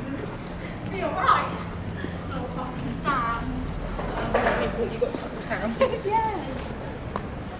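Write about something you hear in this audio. Young women chat briefly as they walk past close by.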